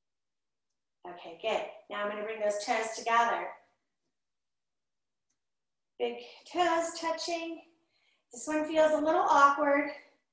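A woman speaks calmly and clearly, close by.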